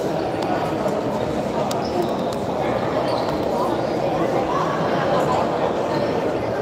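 Shoes squeak on a hall floor.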